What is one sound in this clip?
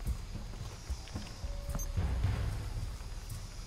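Footsteps crunch on wet, gritty ground.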